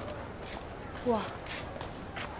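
A woman calls out briefly.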